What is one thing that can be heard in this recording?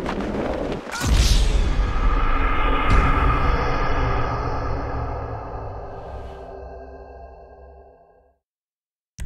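A loud crash bursts and shatters, then rumbles away.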